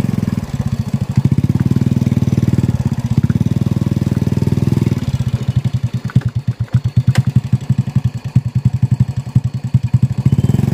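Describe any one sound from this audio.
A small motorbike engine putters steadily, rising and falling as it rides.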